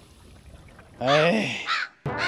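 An elderly man speaks nearby through a microphone.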